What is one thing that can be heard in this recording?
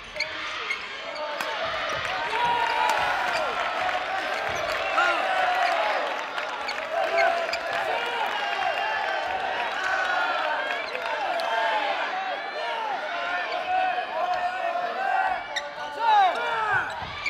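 Sports shoes squeak sharply on a wooden floor.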